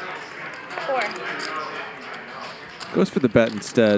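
Poker chips click together on a table.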